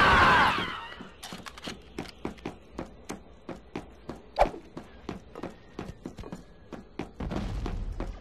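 Boots clatter quickly on metal stairs.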